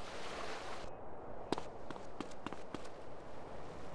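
Footsteps patter on pavement.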